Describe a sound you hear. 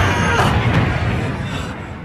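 A young man cries out.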